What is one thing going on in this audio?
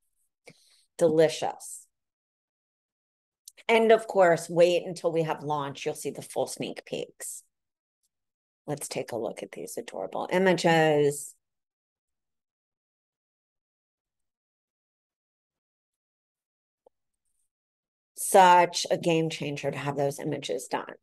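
A woman speaks calmly through a call microphone, in bursts with pauses.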